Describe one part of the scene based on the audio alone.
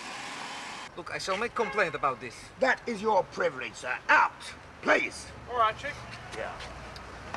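Men shout and argue loudly outdoors.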